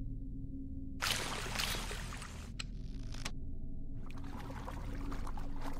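Water splashes as a swimmer breaks the surface and swims.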